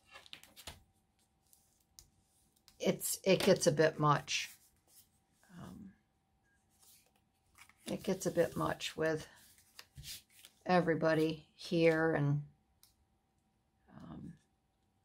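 Paper cards rustle and tap softly as they are handled.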